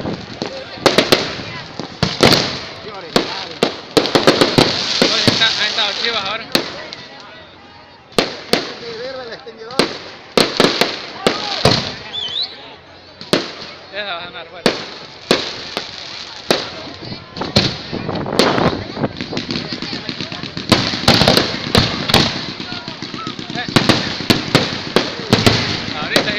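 Firework sparks fizz and crackle.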